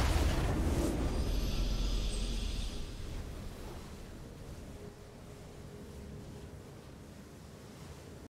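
A short triumphant fanfare plays.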